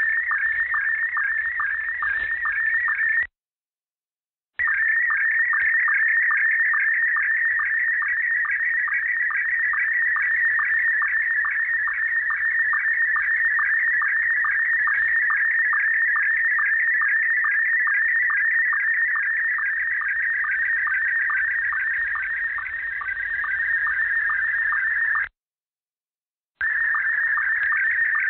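A radio receiver plays a steady, rapidly pulsing high-pitched data signal, broken by two short silences.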